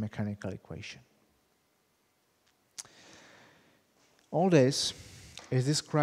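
A middle-aged man lectures calmly through a microphone in a large echoing room.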